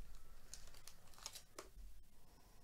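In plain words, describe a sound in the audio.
Plastic sleeves and trading cards rustle and crinkle softly in someone's hands.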